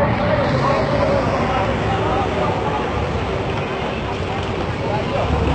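A crowd of people shouts and talks excitedly outdoors.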